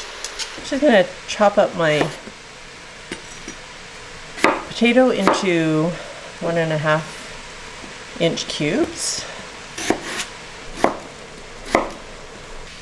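A knife chops through potato onto a wooden board with sharp knocks.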